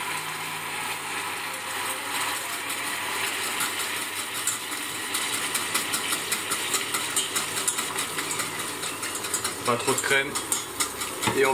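A pepper mill grinds with quick crackling turns.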